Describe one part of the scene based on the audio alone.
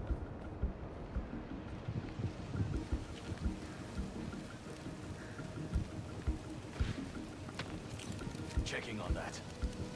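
A bonfire crackles and pops nearby.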